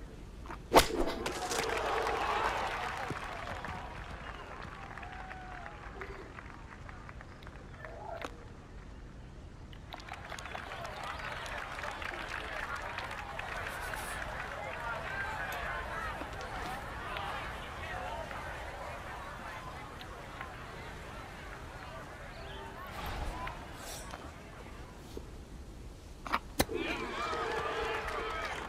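A crowd cheers and applauds after a golf shot.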